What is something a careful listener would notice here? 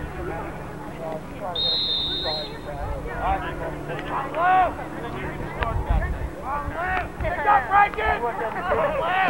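Young men shout and cheer outdoors.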